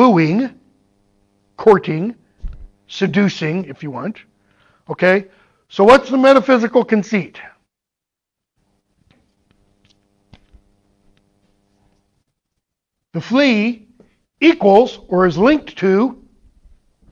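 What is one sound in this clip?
A man lectures through a microphone, speaking in bursts with pauses.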